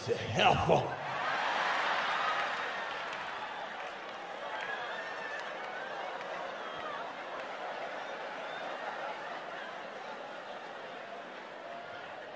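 An audience laughs and murmurs.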